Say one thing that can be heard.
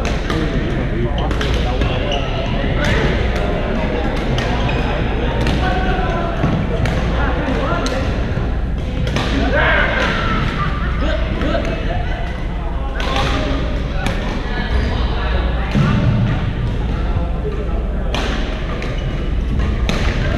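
Men call out and chatter across a large echoing hall.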